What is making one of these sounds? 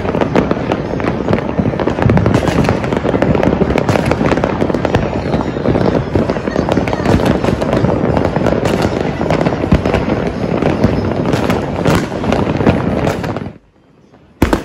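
Fireworks crackle and pop in a steady barrage across a city at night.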